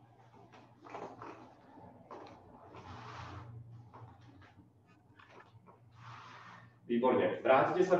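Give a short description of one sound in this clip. Bare feet step and shuffle on a mat and wooden floor.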